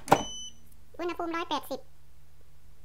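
An air fryer beeps as its buttons are pressed.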